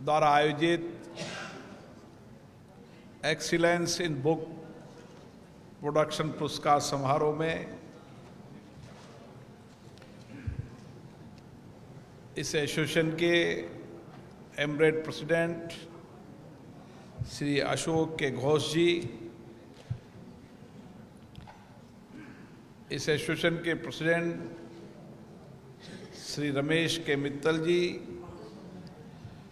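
A middle-aged man speaks slowly and formally into a microphone, with pauses between phrases, heard over a loudspeaker in a reverberant hall.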